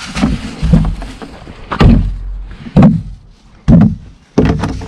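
A plastic bin knocks and thumps as it is tipped and emptied.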